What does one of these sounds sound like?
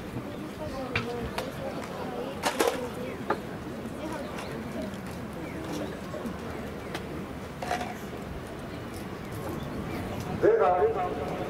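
A man speaks calmly nearby, outdoors.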